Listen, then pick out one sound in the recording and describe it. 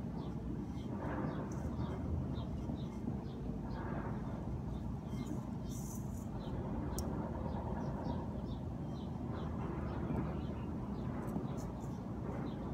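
Gloved fingers press and rustle in soil.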